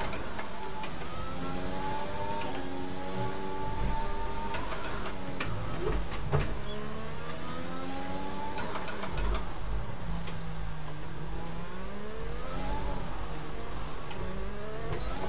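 A racing car engine screams, rising in pitch through each gear and dropping sharply as it slows for corners.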